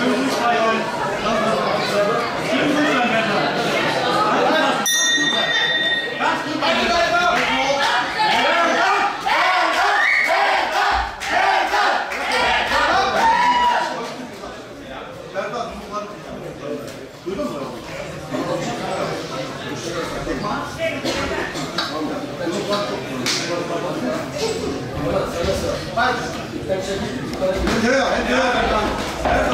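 A crowd shouts and cheers loudly in an echoing hall.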